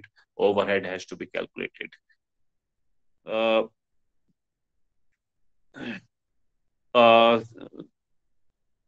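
A middle-aged man speaks close to the microphone in short, animated bursts over an online call.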